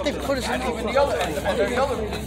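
A hand smacks a small rubber ball.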